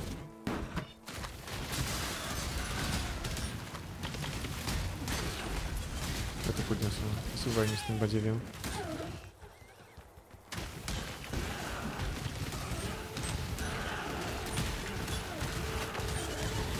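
Game spells whoosh and crackle in fast bursts.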